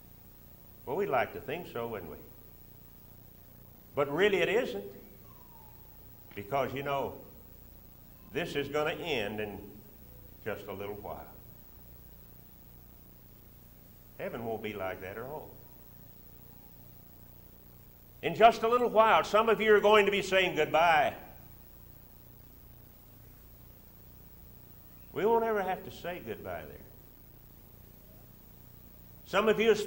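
An elderly man speaks slowly into a microphone, with long pauses between phrases.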